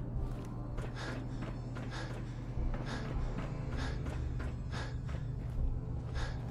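Footsteps crunch steadily over gritty debris.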